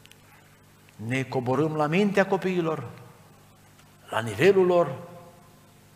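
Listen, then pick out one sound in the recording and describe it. An older man speaks calmly into a microphone, with short pauses.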